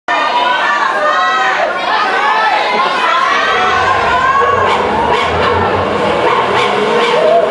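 Music plays loudly through loudspeakers in a large hall.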